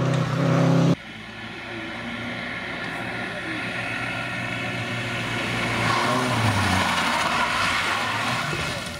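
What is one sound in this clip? A second rally car engine revs and whines through a bend.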